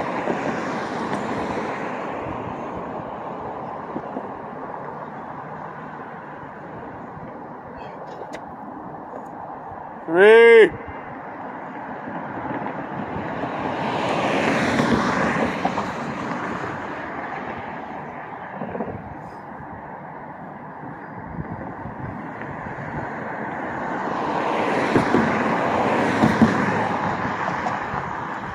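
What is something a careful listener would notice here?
Distant traffic hums steadily outdoors.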